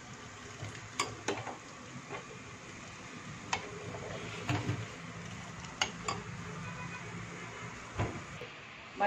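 A metal spoon clinks against a metal pot.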